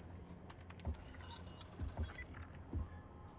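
A bright electronic chime rings once.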